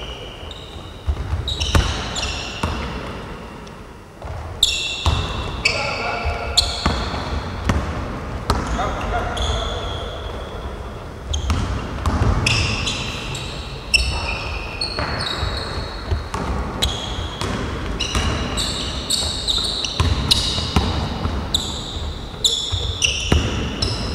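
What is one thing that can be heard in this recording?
Sneakers squeak sharply on a wooden court, echoing in a large hall.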